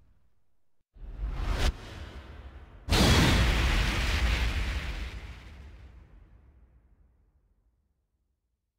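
A bright whoosh rises into a loud, booming impact that rumbles and slowly fades.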